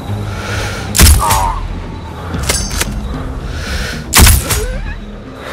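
A sniper rifle fires two sharp shots.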